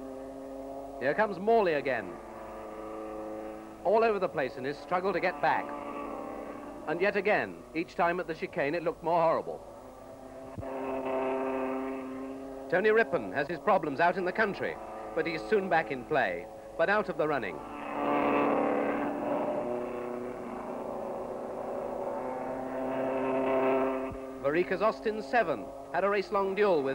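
Racing car engines roar past, revving up and down as they change gear.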